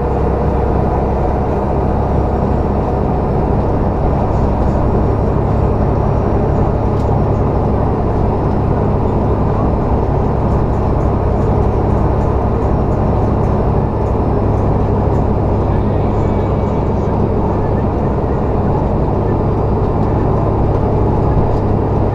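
A large engine rumbles steadily from inside a cab.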